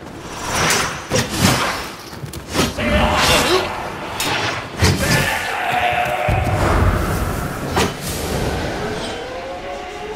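Swords clash and ring in quick strikes.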